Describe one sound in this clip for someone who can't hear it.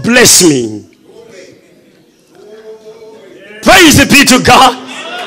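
A man preaches loudly and with animation through a microphone in a large echoing hall.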